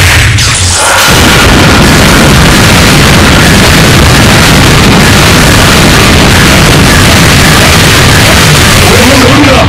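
Loud video game energy blasts roar and crackle.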